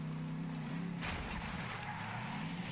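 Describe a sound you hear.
A buggy crashes with a thud and rattle.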